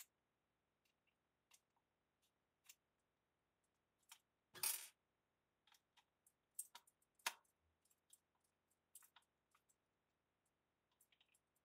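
A screwdriver clicks and scrapes against a plastic hair clipper.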